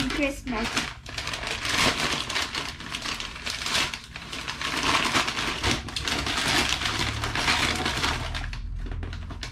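Wrapping paper rustles and tears loudly.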